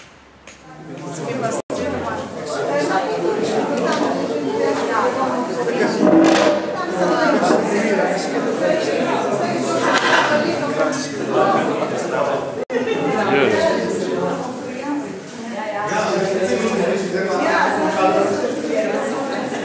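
A crowd of men and women chat all at once indoors.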